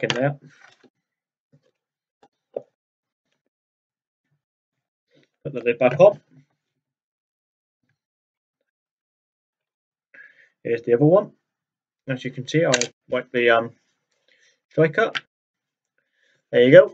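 A young man speaks calmly, close by, in short bursts.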